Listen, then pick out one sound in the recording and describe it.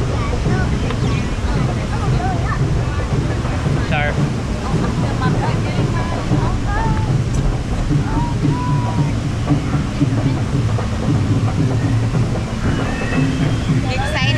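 Water rushes and splashes around a raft.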